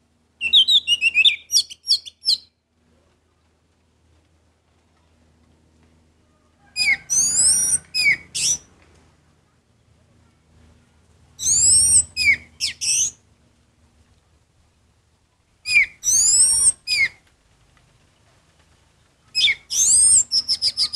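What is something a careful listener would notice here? A songbird sings loud, clear whistling phrases in short bursts close by.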